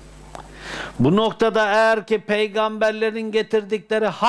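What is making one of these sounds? An elderly man chants loudly in a long, steady voice.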